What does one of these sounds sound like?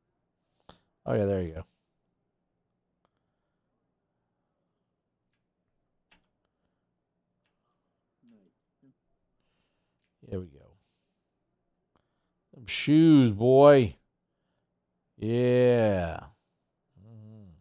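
A middle-aged man speaks into a microphone in short bursts, with animation.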